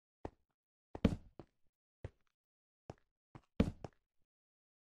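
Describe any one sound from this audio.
Footsteps thud on stone.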